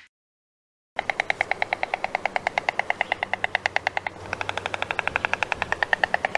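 A white stork clatters its bill in a rapid rattle.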